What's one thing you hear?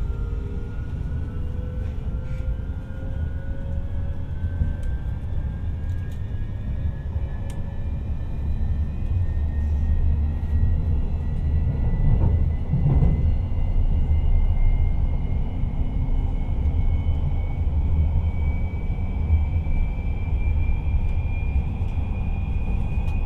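An electric train motor whines, rising slowly in pitch as the train speeds up.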